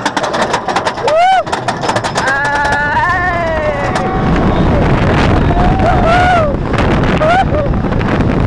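Riders on a roller coaster scream.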